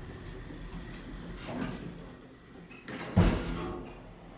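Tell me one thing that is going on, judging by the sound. Elevator doors slide shut and close with a thud.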